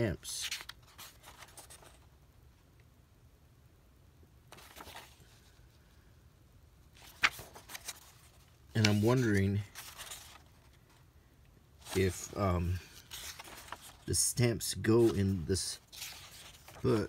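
Paper pages rustle and flip as a book is leafed through.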